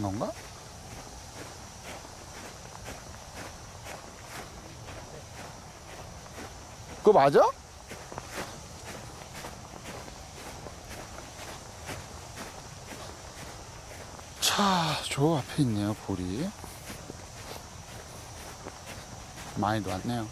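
Footsteps swish steadily across grass.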